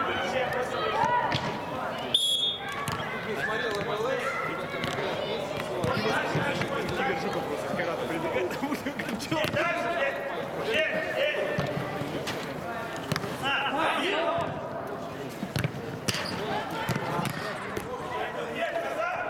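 Men shout and call to each other across a large echoing hall.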